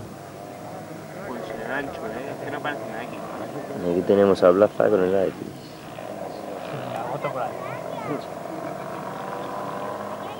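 A car engine whines in the distance as the car climbs a dirt track.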